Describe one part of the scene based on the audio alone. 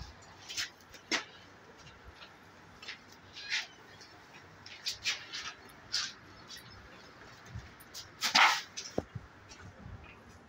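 Kittens scuffle and scratch on a soft blanket.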